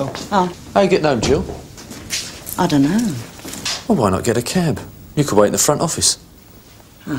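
A middle-aged woman speaks in an upset, pleading voice nearby.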